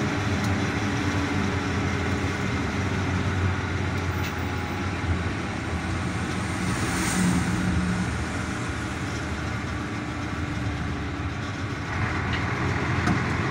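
Wind rushes past an open vehicle.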